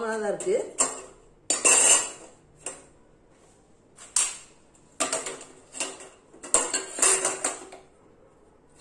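Metal rings clink and rattle as they are set onto a stove.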